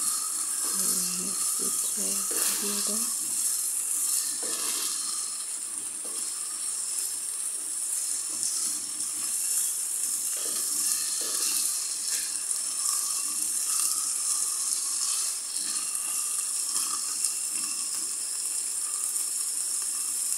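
A wooden spoon scrapes and stirs in a pan.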